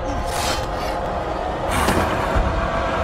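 Blows land in a scuffle between two men.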